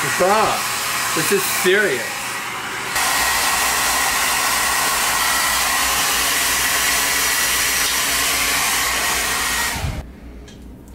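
A hair dryer blows with a loud, steady roar.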